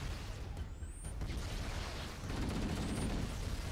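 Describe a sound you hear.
A rifle fires a burst of gunshots.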